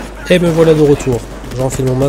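A gun fires a shot indoors.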